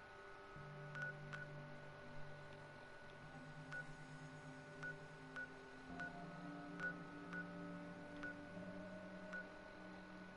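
A handheld device gives short soft beeps as its controls are worked.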